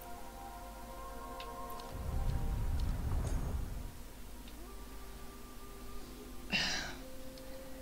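A soft musical tone hums steadily.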